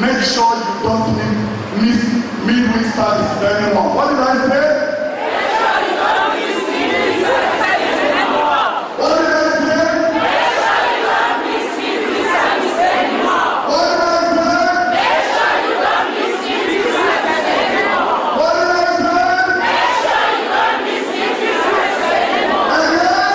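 A man sings loudly through a microphone in a large echoing hall.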